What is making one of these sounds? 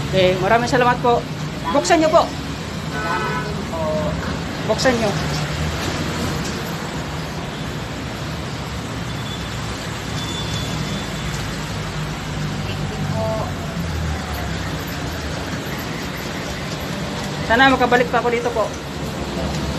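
An elderly woman talks close by.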